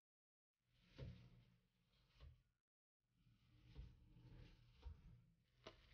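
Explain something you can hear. Toast sandwiches thump softly onto a hot griddle.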